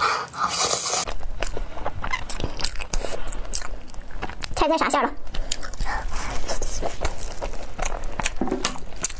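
A young woman bites and chews crispy dumplings close to a microphone.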